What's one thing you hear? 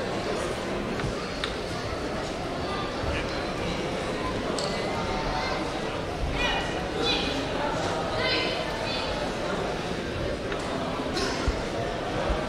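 A crowd murmurs and chatters steadily in a large echoing hall.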